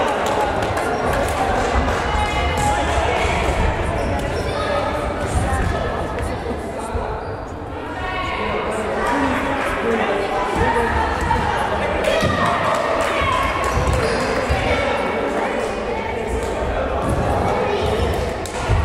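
Children shout and chatter in a large echoing hall.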